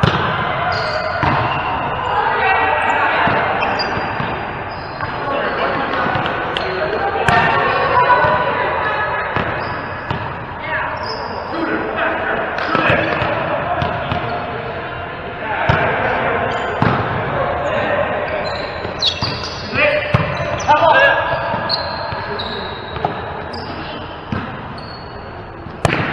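Sneakers squeak on a sports floor in an echoing hall.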